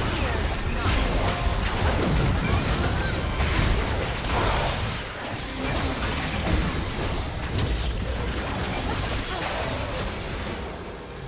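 Heavy thuds of impacts boom again and again.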